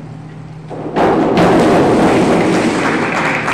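A diver splashes into the water of an echoing indoor pool.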